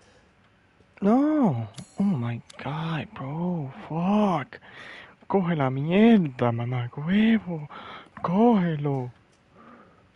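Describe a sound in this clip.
A young man talks with animation, close to a microphone.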